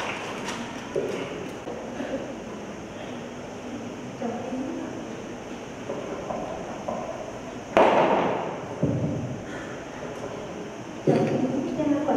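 A woman reads out calmly through a microphone and loudspeakers in an echoing hall.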